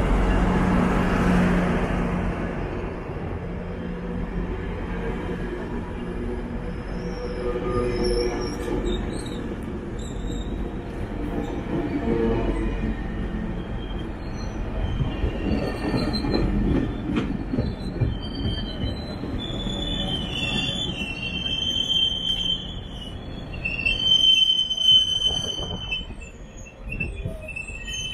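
A bilevel commuter train stands idling at a platform with a low hum.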